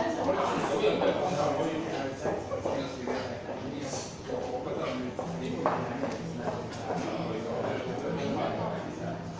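A woman speaks slowly in an echoing hall.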